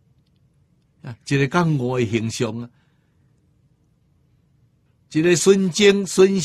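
An elderly man speaks calmly and clearly into a microphone, pausing between phrases.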